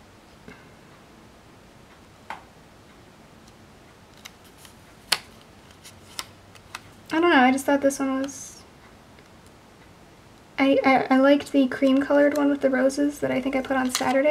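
A sticker is peeled and pressed down with soft paper crinkles.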